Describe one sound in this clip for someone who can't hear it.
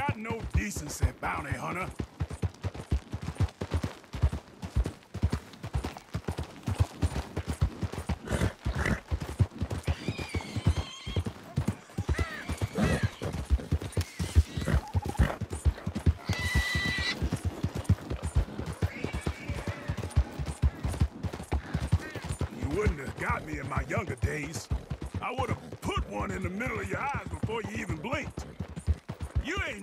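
A horse gallops with quick, steady hoofbeats on a stony trail.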